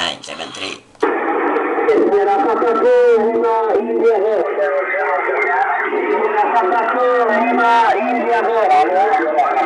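A man's voice speaks over a radio loudspeaker, thin and crackly.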